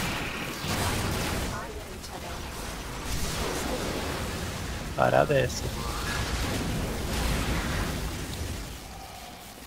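Energy blasts crackle and roar.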